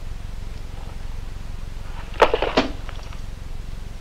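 A box is set down on a wooden desk with a thump.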